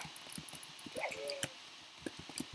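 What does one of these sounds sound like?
A pig grunts and squeals as it is struck.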